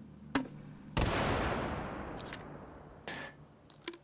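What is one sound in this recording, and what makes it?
A rifle fires a single loud shot that echoes and slowly fades.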